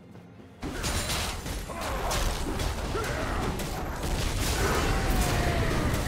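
Game spell effects burst and crackle in rapid succession during a fight.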